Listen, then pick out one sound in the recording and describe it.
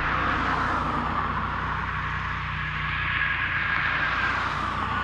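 Traffic rushes steadily past close by.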